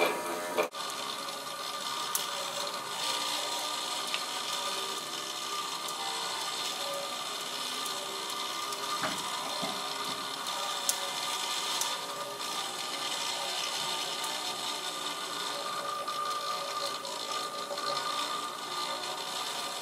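A rope runs over a small pulley.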